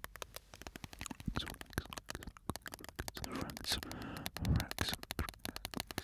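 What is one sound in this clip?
Crisp plastic crackles and crinkles close to a microphone.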